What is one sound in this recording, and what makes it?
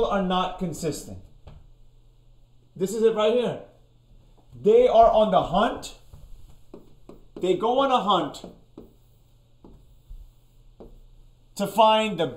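A man speaks with animation, close to a microphone, in short bursts.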